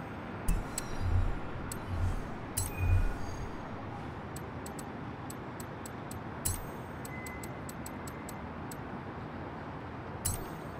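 Short menu clicks tick as selections change.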